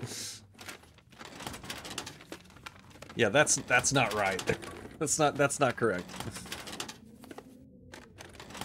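Papers rustle and shuffle as a drawer is rummaged through.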